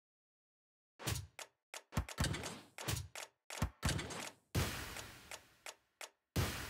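Short electronic game sound effects blip and whoosh in quick bursts.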